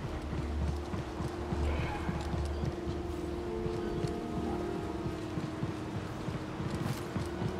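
Quick footsteps run across a metal roof.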